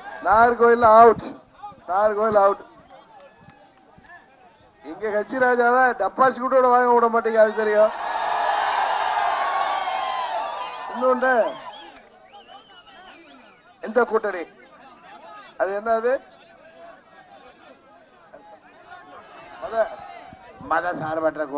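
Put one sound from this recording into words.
A man speaks forcefully into a microphone through loudspeakers, in short bursts with pauses.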